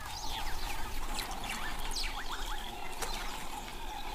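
A lion laps water.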